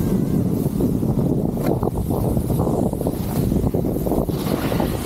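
Wind rushes loudly past the skier.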